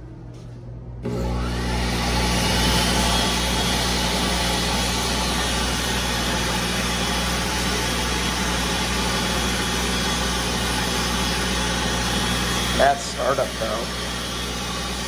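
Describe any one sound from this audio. A hand dryer blows with a loud, steady roar.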